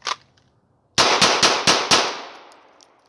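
A handgun fires several quick shots outdoors.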